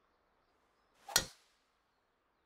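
A golf club strikes a ball with a sharp thwack.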